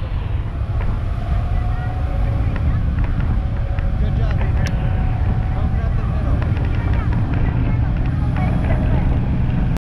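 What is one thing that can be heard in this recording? Strong wind roars and buffets outdoors.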